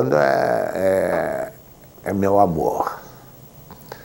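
An elderly man speaks calmly into a microphone, in short phrases.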